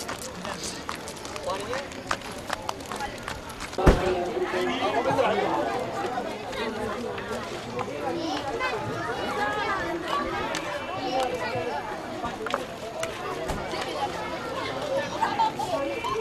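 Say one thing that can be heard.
Several men and women talk at once nearby, outdoors.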